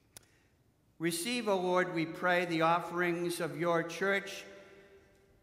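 An elderly man chants loudly, heard through a microphone.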